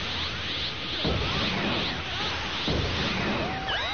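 Video game impacts boom with deep thuds.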